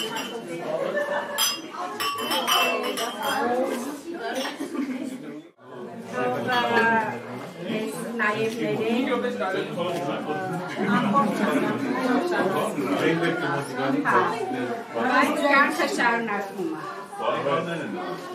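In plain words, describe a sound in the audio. A crowd of men and women chatter and laugh nearby.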